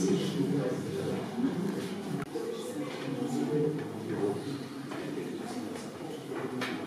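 Several people chatter in a room with a slight echo.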